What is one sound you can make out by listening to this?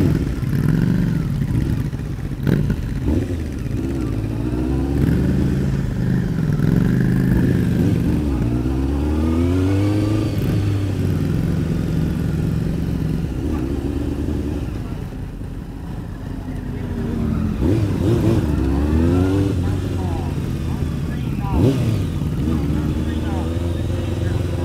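Other motorcycles' engines buzz and rev nearby.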